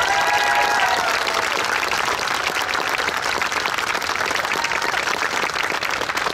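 A crowd applauds and claps outdoors.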